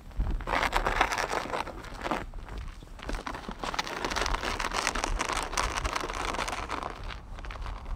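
Footsteps crunch on icy snow.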